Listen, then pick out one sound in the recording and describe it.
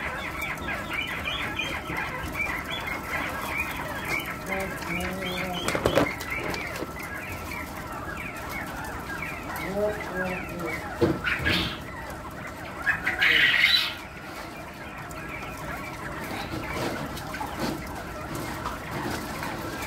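Many chickens chirp and cluck constantly, close by.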